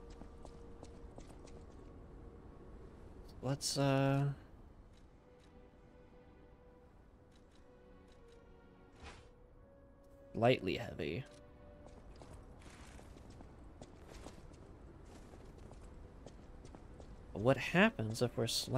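Footsteps tap quickly on stone pavement.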